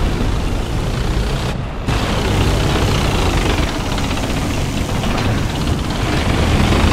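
Tank tracks clatter and squeak while rolling.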